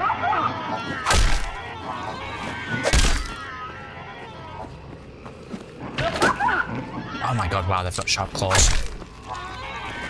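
An axe strikes a body with heavy, wet thuds.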